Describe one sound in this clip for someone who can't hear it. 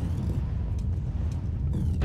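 Small footsteps patter quickly on stone.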